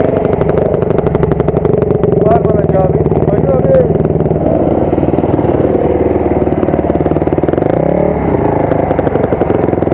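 A dirt bike engine idles and putters close by.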